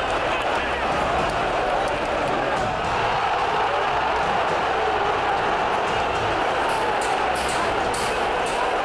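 A large crowd of fans chants and roars loudly in a stadium.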